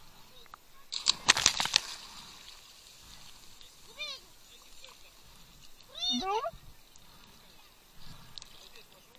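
Water splashes and churns close by.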